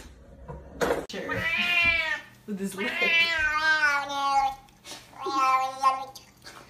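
A cat meows loudly and repeatedly.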